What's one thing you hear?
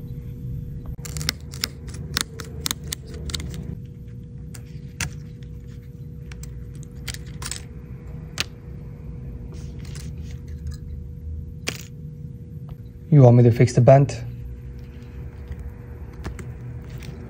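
Small metal parts and a tool click and tap against a phone frame.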